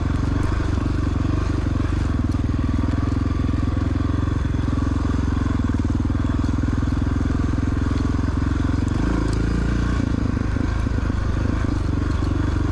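A dirt bike engine buzzes loudly up close, changing pitch as the throttle shifts.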